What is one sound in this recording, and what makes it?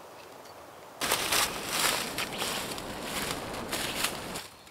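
Footsteps crunch through dry leaves outdoors.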